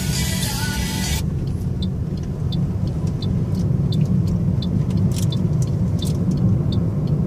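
A car engine hums and its tyres rumble steadily on the road.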